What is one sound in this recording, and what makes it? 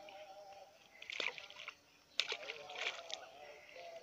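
A stone splashes into water.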